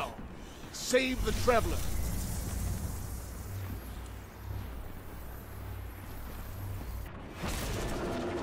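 Explosions rumble low and heavy.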